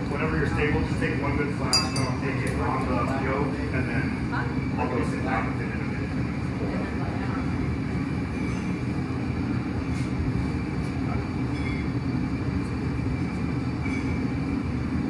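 A glass furnace roars steadily.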